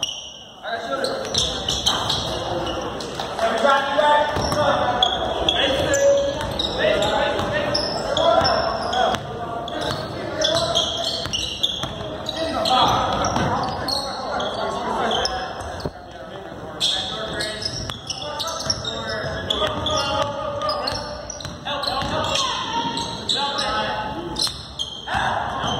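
Spectators chatter and shout in a large echoing gym.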